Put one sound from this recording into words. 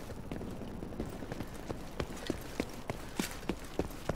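Footsteps thud rapidly on pavement as a person runs.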